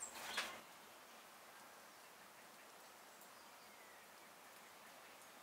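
Small crackles come from hands peeling a shell.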